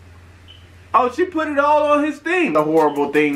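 A young man talks with animation close to a microphone.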